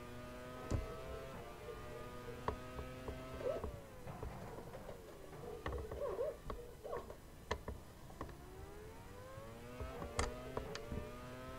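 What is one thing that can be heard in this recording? A racing car engine whines loudly, its pitch dropping as it slows and rising again as it speeds up.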